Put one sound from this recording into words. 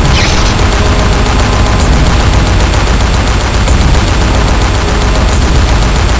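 A hovering machine fires back with heavy blasts.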